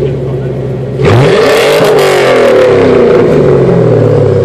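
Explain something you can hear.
A car engine revs loudly and quickly winds back down.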